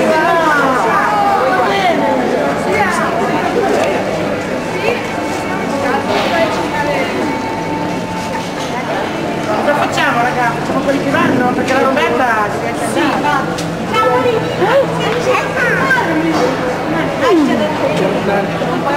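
A young woman talks and laughs cheerfully up close.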